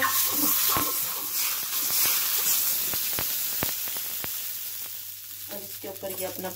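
Water sizzles and hisses loudly on a hot pan, then slowly dies away.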